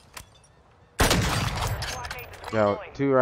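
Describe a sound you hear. A sniper rifle fires a single loud shot that echoes away.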